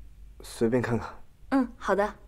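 A young man speaks briefly and calmly nearby.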